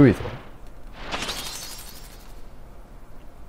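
A bright magical shimmer rises and fades.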